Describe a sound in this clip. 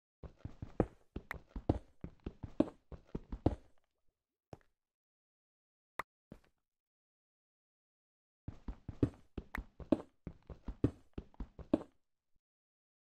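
A pickaxe chips rapidly at stone with crumbling knocks.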